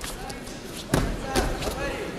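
A body slams onto a mat with a heavy thud.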